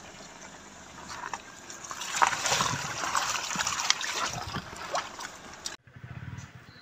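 Tyres churn and splash through thick mud.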